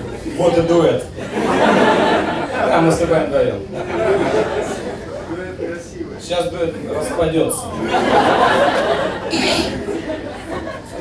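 An audience laughs loudly in bursts.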